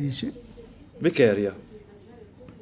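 An elderly man speaks briefly and calmly, close by.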